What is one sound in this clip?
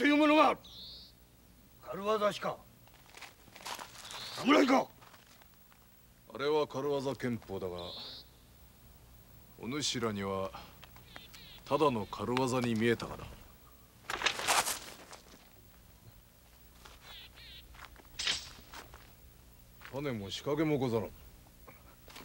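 A man speaks tensely in short outbursts nearby.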